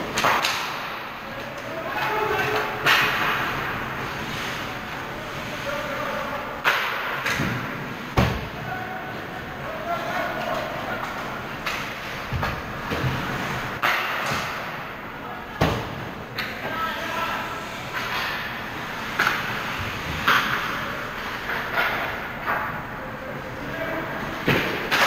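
Hockey sticks and pucks clack sharply, echoing in a large hall.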